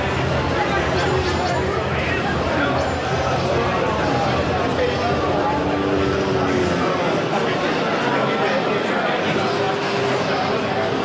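Music and effects play through a loudspeaker.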